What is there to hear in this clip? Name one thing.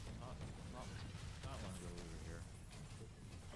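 A young man talks excitedly into a headset microphone.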